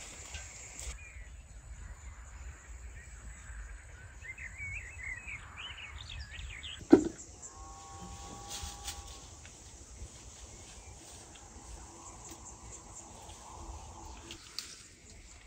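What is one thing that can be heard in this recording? Leaves rustle softly as branches are pulled while fruit is picked.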